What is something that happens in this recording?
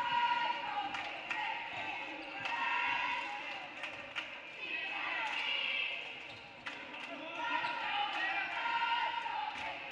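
Sneakers squeak sharply on the gym floor.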